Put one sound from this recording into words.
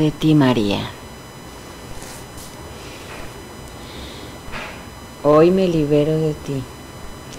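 A middle-aged woman speaks softly and calmly close by.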